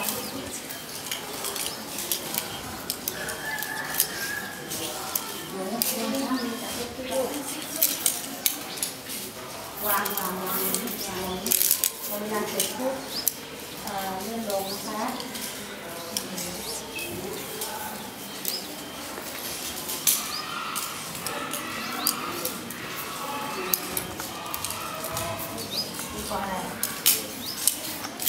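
Fingers flick the beads of an abacus with small, quick clicks.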